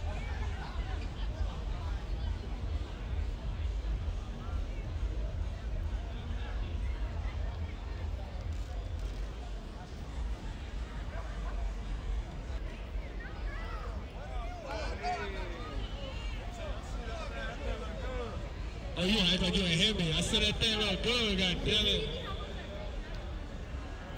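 A busy crowd chatters outdoors on a city street at night.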